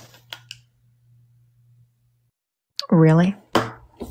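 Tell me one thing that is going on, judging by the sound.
A hand clicks a small tally counter.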